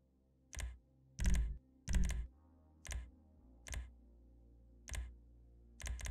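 Short, sharp whooshing clicks sound again and again.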